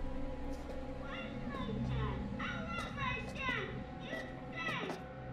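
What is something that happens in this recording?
A girl shouts in a distressed voice.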